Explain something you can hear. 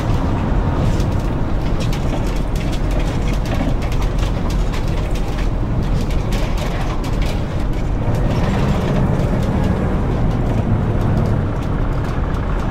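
A bus engine rumbles steadily while driving along a road.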